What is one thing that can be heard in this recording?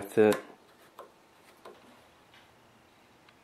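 A plastic clamp clicks and rattles as it is fitted.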